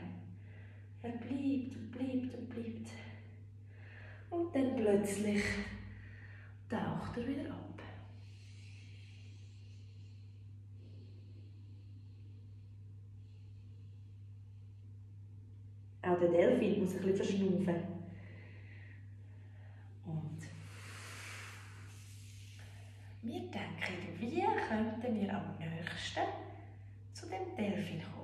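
A woman speaks calmly and softly, close by.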